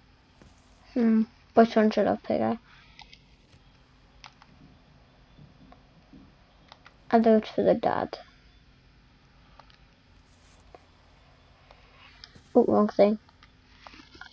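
Record sleeves rustle and tap as they are flipped through.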